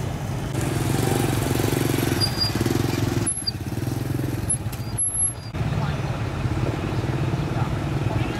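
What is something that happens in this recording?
Motorbike engines putter past close by.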